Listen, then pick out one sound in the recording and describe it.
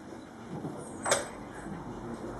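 A chess piece knocks down on a wooden board.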